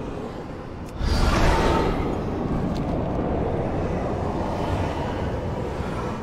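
A magical portal whooshes and hums loudly.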